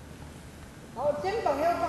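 A woman speaks loudly in a large echoing hall.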